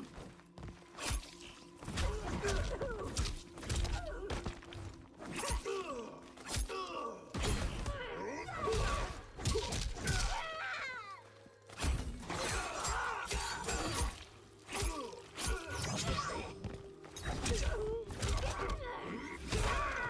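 A woman grunts and cries out as she fights.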